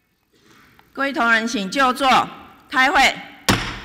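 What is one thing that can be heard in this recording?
A woman speaks firmly into a microphone.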